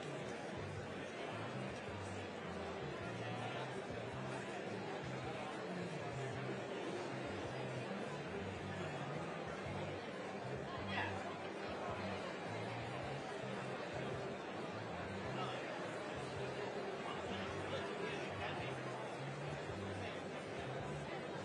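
A large crowd chatters steadily in a big, echoing hall.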